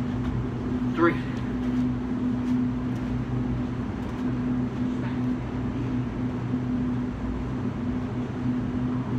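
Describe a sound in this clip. Footsteps on concrete walk away and fade.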